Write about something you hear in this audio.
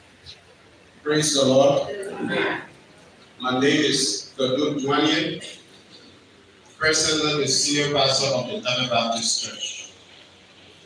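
A man speaks loudly through a microphone and loudspeaker in an echoing hall.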